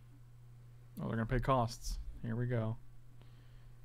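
A man speaks briefly into a close microphone with animation.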